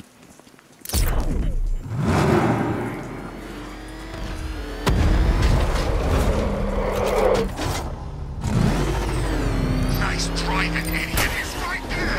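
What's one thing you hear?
A powerful car engine roars and revs.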